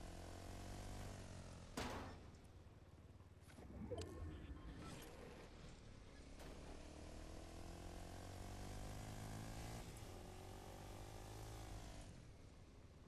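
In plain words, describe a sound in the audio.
A quad bike engine revs and drones over snowy ground.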